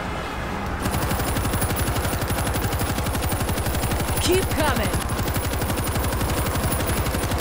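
A heavy machine gun fires in rapid, steady bursts.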